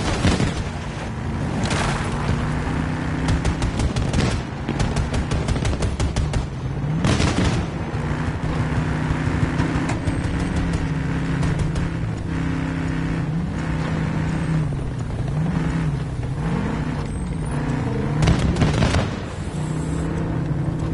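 Tank treads clatter over pavement.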